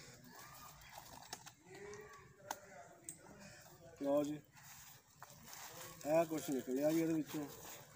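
Cardboard and plastic wrapping rustle as a parcel is opened.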